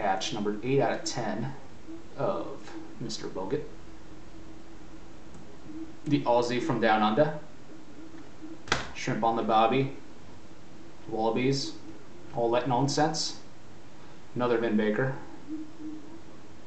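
A man talks calmly close to a microphone.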